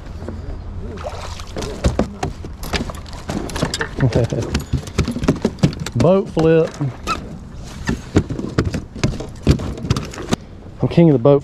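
A fishing reel clicks and rattles as line is reeled in.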